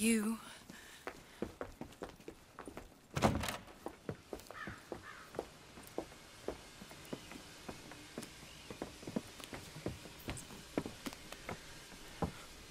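Footsteps tap on wooden floorboards.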